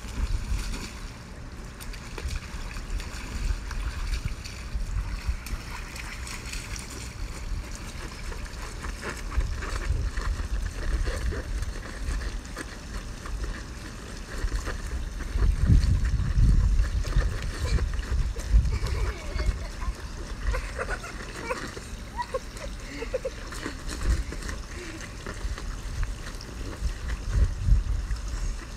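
Young boys splash and scuffle on a wet plastic slide.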